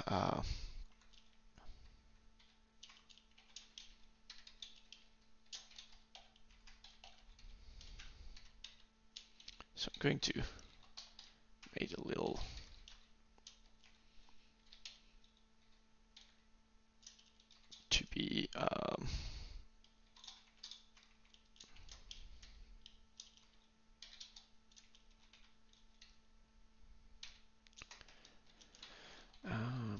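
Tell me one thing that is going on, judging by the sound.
Keys click on a computer keyboard in quick bursts.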